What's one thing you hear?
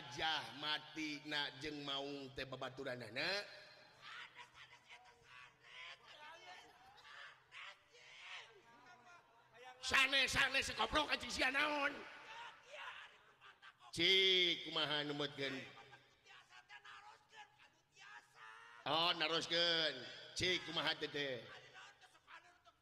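A man voices a puppet with an animated, exaggerated voice through a loudspeaker.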